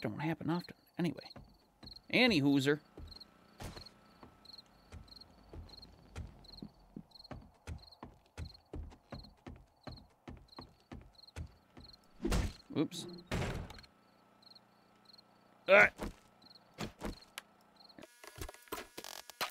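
Footsteps thud steadily on wooden floors.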